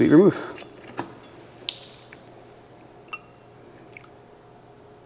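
Glass bottles clink against glasses.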